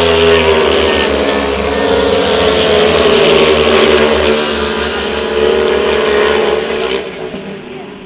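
Speedway motorcycle engines roar loudly as bikes race past, then fade away.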